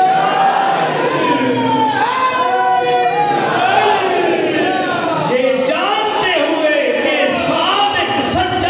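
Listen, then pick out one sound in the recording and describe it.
A man chants melodically into a microphone, heard through loudspeakers in an echoing hall.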